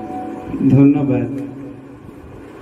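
A young man sings into a microphone, close and clear.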